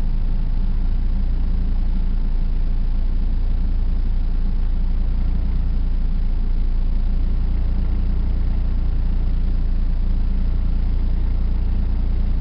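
A car engine idles in slow traffic, heard from inside the car.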